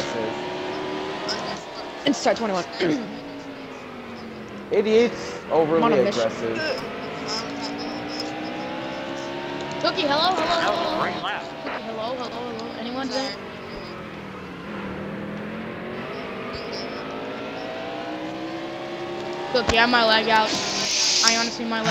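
A race car engine drones steadily, its pitch slowly rising and falling.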